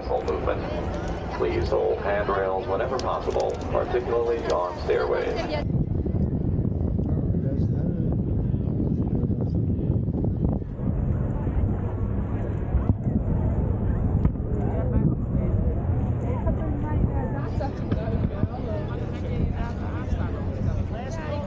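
A large crowd murmurs and chatters nearby.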